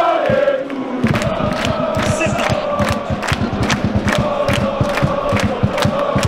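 A crowd claps in a fast, steady rhythm.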